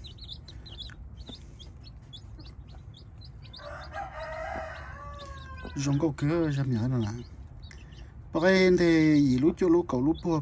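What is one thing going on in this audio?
Chicks peep rapidly and shrilly close by.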